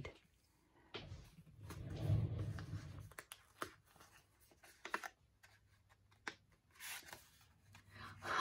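Paper rustles and crinkles as an envelope is handled.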